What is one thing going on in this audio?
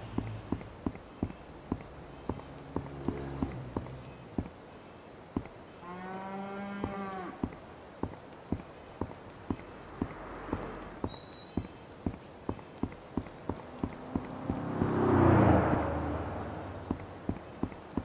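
Footsteps crunch steadily on gravel and paving.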